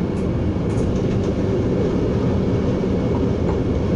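A passing train rushes by close alongside.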